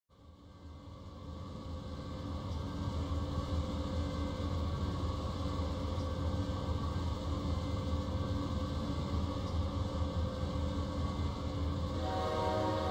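A diesel locomotive engine rumbles steadily, growing louder at first.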